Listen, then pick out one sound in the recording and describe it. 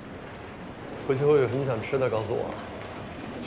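A man speaks softly nearby.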